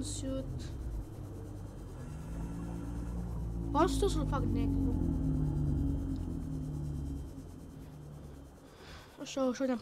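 A small underwater vehicle hums steadily as it glides through water.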